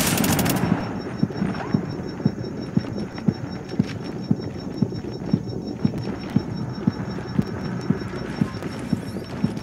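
Footsteps thud quickly on stairs.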